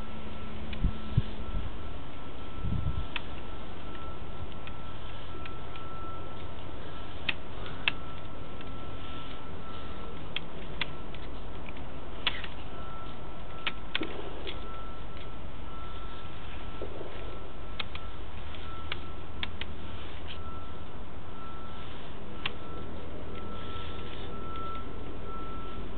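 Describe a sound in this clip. A small motor hums steadily.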